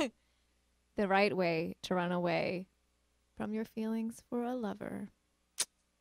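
A young woman reads out into a microphone, heard through a loudspeaker.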